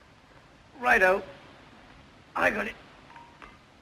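A man calls out briefly from nearby.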